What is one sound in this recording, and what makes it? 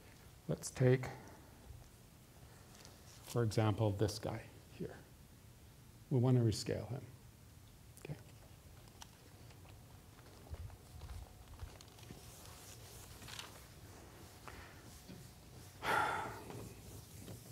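A man speaks in short bursts in a large echoing hall.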